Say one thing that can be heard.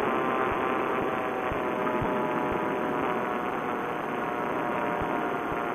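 A motor drones steadily and loudly close by.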